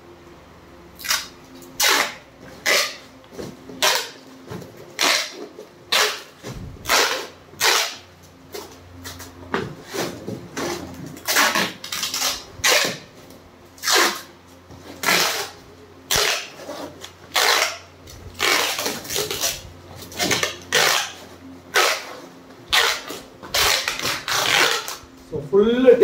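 Packing tape rips loudly off a roll in repeated short pulls.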